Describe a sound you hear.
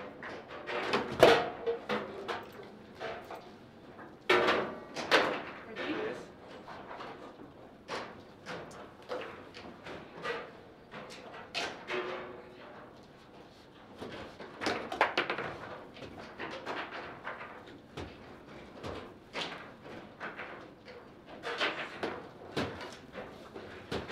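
Foosball rods rattle and slide as players spin and shift them.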